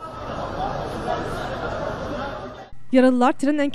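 A crowd of men murmur and call out outdoors.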